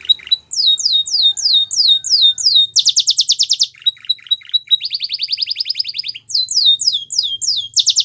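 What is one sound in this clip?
A canary sings close by in fast, high, bright trills and chirps.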